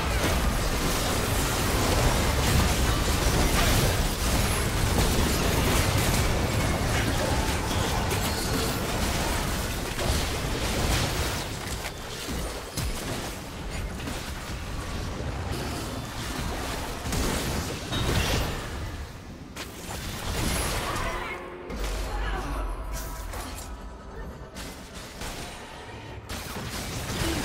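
Magic spells crackle, whoosh and burst in a fast fight.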